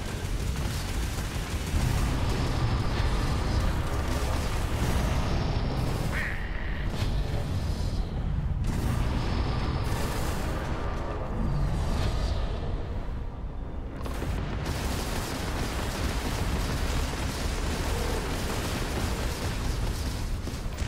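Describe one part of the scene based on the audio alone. A spaceship engine roars steadily with a deep rumble.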